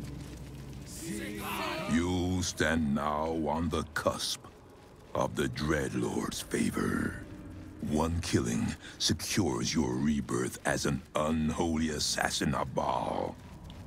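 A man speaks in a deep, menacing voice.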